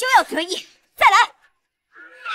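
A young woman shouts angrily up close.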